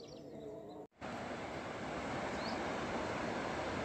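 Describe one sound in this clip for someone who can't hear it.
A river rushes steadily over rapids nearby.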